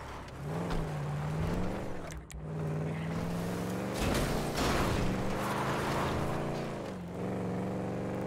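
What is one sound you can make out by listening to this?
A car engine revs and roars as it speeds up.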